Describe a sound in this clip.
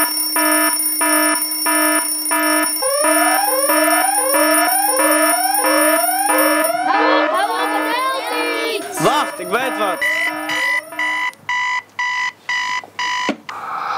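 An alarm clock beeps in a fast, steady rhythm.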